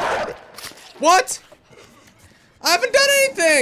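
A young man speaks loudly and excitedly into a microphone, his voice rising into yells.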